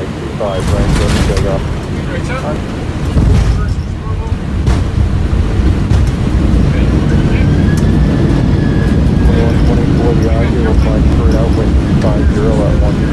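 A jet's engines rumble steadily as the plane rolls along a runway.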